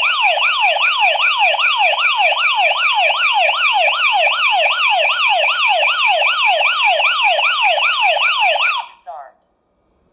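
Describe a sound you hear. An alarm siren wails rapidly up and down, then stops.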